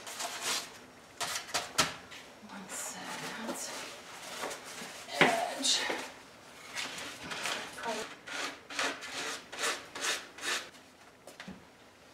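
Leather rustles and crinkles as it is handled.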